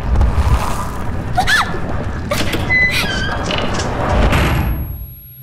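A young woman speaks in a frightened voice.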